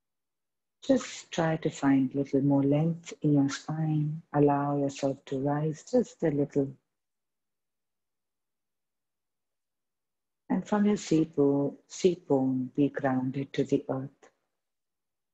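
A woman speaks calmly and slowly, heard through an online call.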